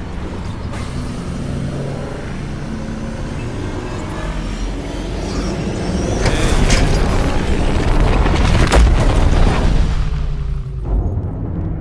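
A deep engine rumble roars and swells, then cuts off.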